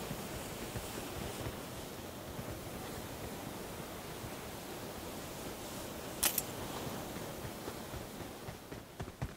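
Footsteps thud steadily on the ground.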